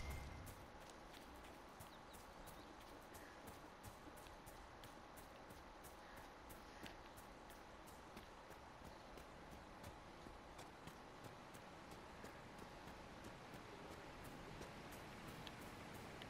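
Footsteps patter quickly over grass and rock.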